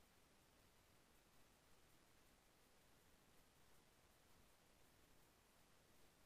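A pickaxe chips at stone with quick, faint taps.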